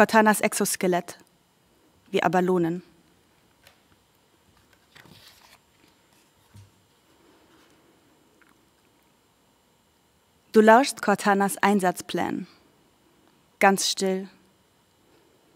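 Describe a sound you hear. A young woman reads aloud slowly into a microphone, with long pauses.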